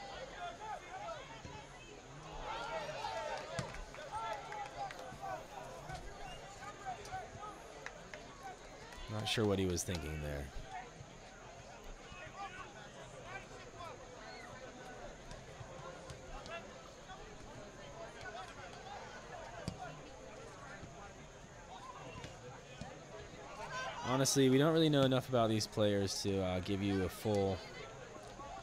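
A crowd of spectators murmurs and chatters outdoors at a distance.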